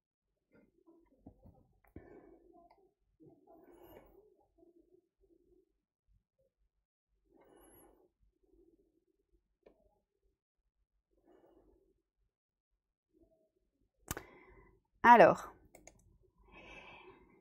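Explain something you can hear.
A young woman speaks quietly and calmly through a microphone.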